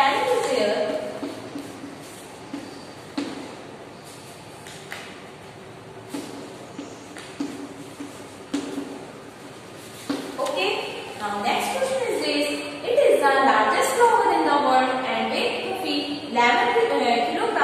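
A young woman speaks clearly into a microphone in an echoing room.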